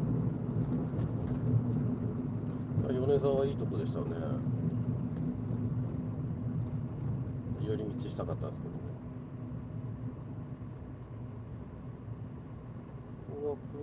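Tyres roll over the road with a low rumble.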